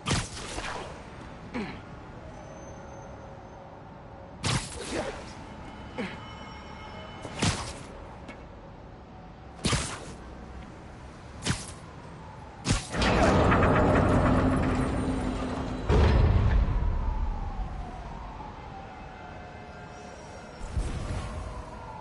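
Webs shoot out with sharp zips.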